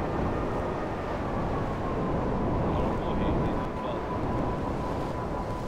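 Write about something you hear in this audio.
A jet engine roars steadily as a flying bike speeds along.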